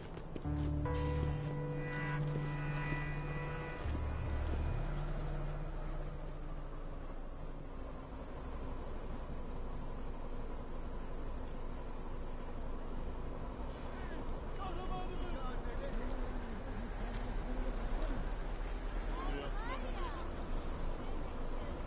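Traffic noise from a city street rumbles steadily.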